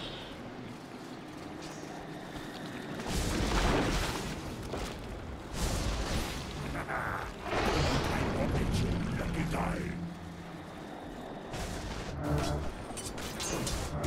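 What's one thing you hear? Game spells whoosh and crackle during a fight.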